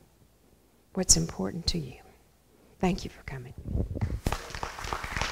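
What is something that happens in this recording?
A woman speaks into a microphone with animation, heard through loudspeakers in an echoing hall.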